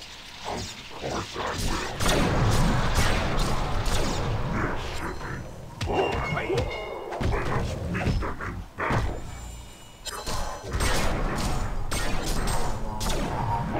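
Weapons clash and strike in quick bursts.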